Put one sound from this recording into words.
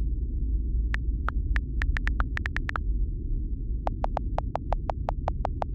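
Keyboard taps click quickly in short bursts.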